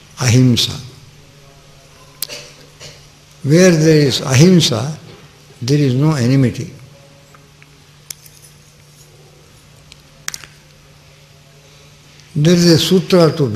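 An elderly man speaks slowly and expressively into a microphone, with long pauses.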